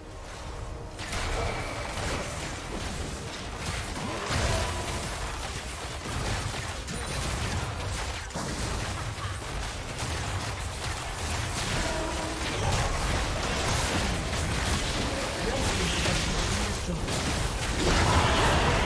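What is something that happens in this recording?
Spell effects and attacks of a video game crackle, whoosh and thud.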